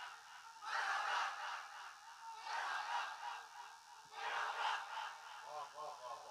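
A crowd of men cheers and shouts loudly in bursts.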